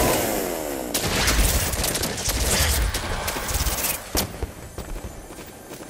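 A pickaxe strikes wood with sharp thuds.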